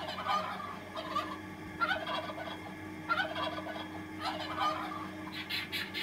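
A turkey gobbles in rapid bursts.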